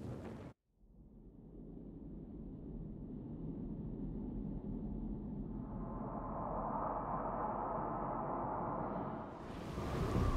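Heavy rain pours down steadily in a storm.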